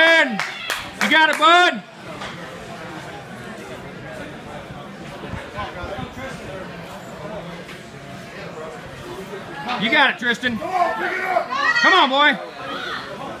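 Men shout loud encouragement nearby.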